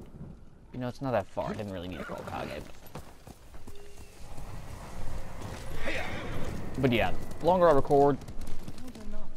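Horse hooves pound steadily on a dirt path.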